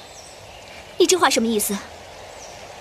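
A young woman asks a question in surprise.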